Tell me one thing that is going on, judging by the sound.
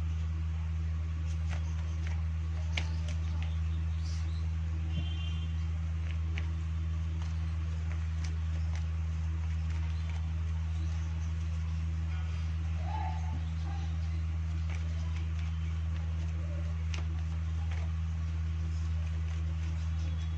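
Playing cards shuffle and flick against each other.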